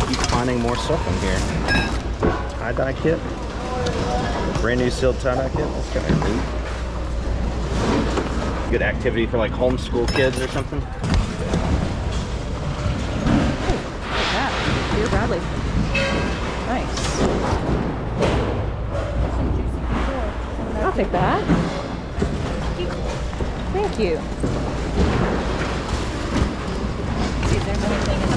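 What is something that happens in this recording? A crowd of people chatters in a large echoing hall.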